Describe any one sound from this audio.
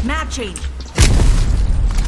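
A sniper rifle fires a single loud, booming shot.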